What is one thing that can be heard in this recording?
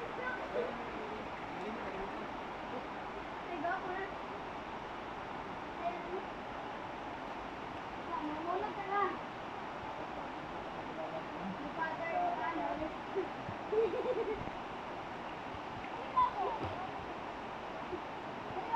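Water flows and babbles steadily in a shallow stream.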